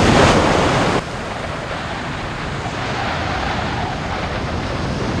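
Waves wash onto a sandy shore.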